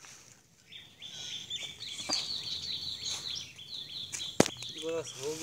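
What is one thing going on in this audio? A hoe chops into dry soil.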